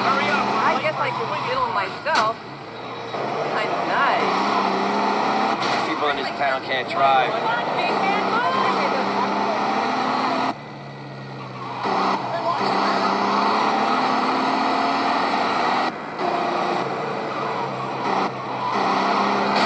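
Tyres screech on tarmac during sharp turns.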